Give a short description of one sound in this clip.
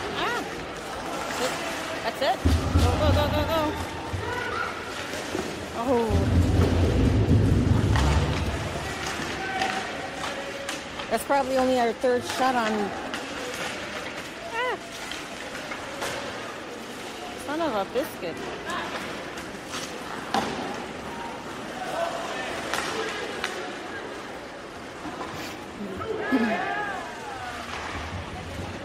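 Skates scrape across ice in a large echoing arena.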